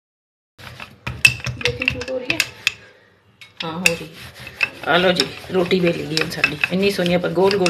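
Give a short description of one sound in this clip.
A wooden rolling pin rolls and knocks on a board.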